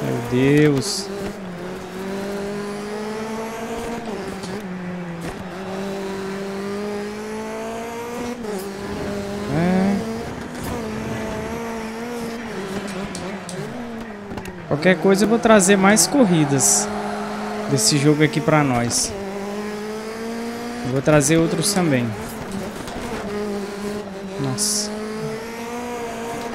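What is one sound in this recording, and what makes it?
A rally car's engine revs hard and shifts gears throughout.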